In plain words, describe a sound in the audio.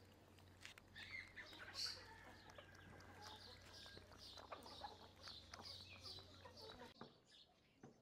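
A dog chews and laps food from a bowl.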